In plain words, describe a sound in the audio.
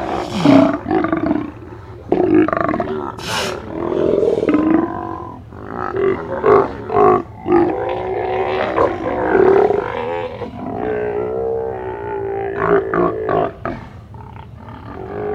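A group of sea lions bark and roar loudly nearby.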